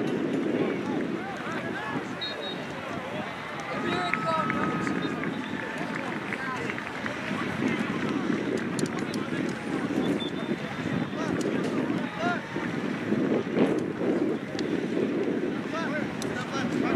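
Young players call out to each other across an open field.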